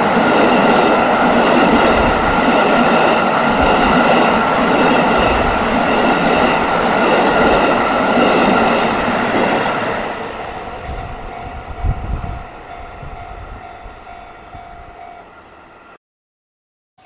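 A freight train rumbles and clatters loudly along the rails close by, then fades into the distance.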